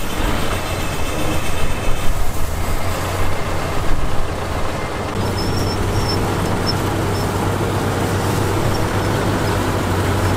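A bulldozer engine rumbles steadily while pushing earth.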